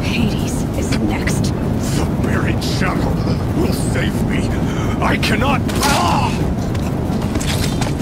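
A man speaks in a strained, pleading voice.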